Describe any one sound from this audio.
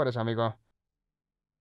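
A man speaks into a handheld radio.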